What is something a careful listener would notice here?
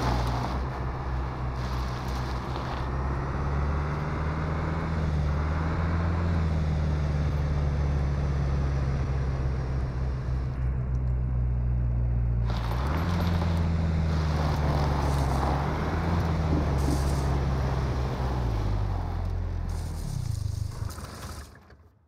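A car engine drones steadily and revs up and down as the car speeds along.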